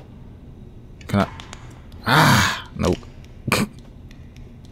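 A young man exclaims loudly and with animation into a close microphone.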